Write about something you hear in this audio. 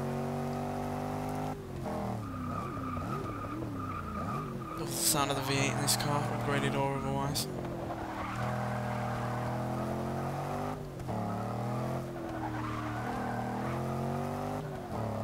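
A car engine roars and shifts pitch as the car accelerates and slows.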